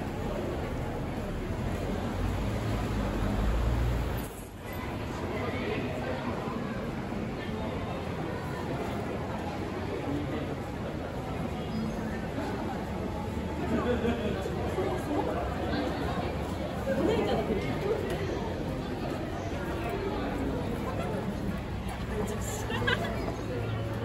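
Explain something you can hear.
Footsteps shuffle on pavement nearby.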